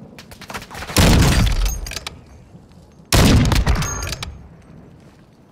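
A sniper rifle fires two loud, booming shots that echo away.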